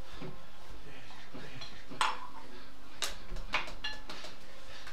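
Dishes clink and clatter close by.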